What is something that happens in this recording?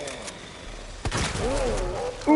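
A shotgun fires a single loud blast.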